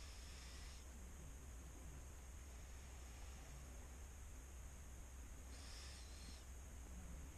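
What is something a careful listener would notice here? A man breathes slowly and heavily close by.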